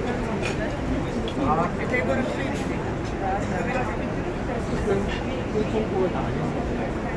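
Adult men and women chat nearby in the background.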